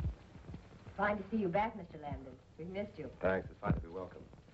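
A woman speaks cheerfully from across a room.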